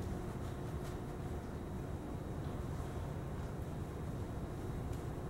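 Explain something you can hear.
Tape crinkles as it is wrapped around an ankle.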